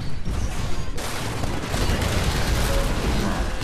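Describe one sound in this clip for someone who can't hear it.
An electric blast crackles and booms.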